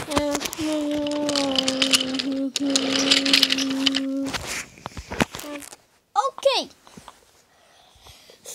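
A toy train rattles along a wooden track.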